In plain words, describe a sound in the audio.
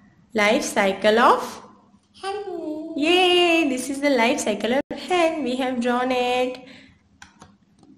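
A young girl speaks clearly and close by.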